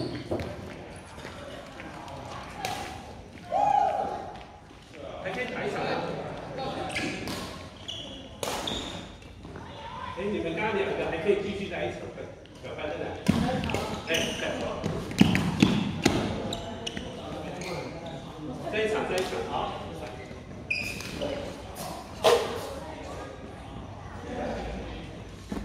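Men talk and call out across the hall.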